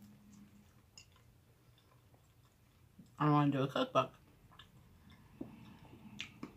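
A woman chews food noisily.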